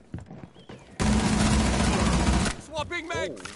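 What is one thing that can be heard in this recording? A rifle fires a rapid burst of shots close by.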